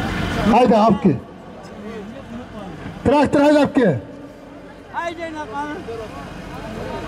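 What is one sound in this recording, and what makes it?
Men in a crowd shout and call out loudly outdoors.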